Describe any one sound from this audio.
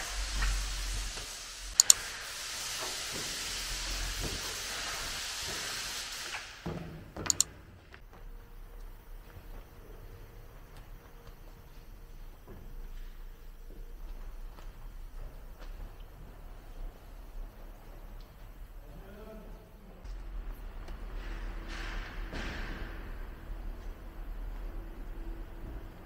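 A cloth wipes and squeaks across a car's paint and glass.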